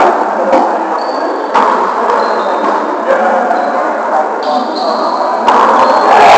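Sneakers squeak sharply on a wooden court floor.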